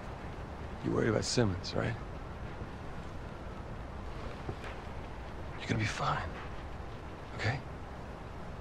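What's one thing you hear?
A man speaks softly and reassuringly.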